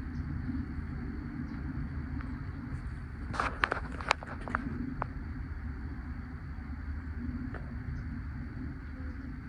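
Wind gusts steadily across the microphone outdoors.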